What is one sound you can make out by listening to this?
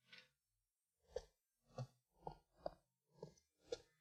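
Footsteps walk at a steady pace.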